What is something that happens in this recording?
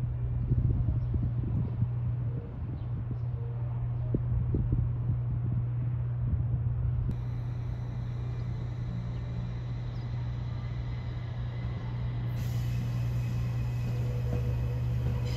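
An electric train hums as it rolls slowly along the tracks.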